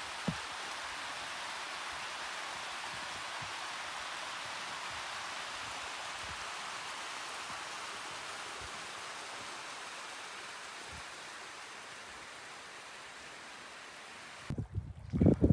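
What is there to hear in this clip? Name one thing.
A small stream rushes over rocks.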